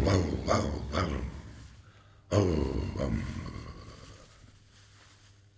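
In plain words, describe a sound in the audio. A man strums an acoustic guitar in loud chords that ring out and fade.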